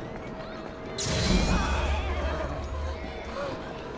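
An explosion bursts with a loud hiss.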